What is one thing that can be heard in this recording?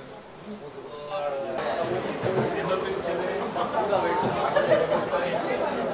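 A crowd of men murmurs and talks in a room.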